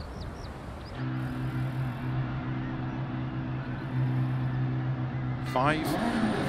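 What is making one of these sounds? A rally car engine idles with a steady low hum.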